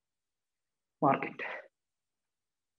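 A man speaks briefly into a close microphone.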